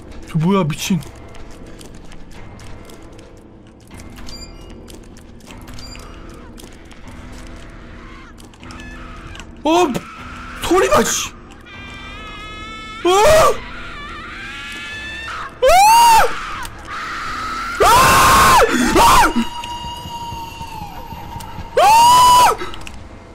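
A man talks and exclaims loudly into a close microphone.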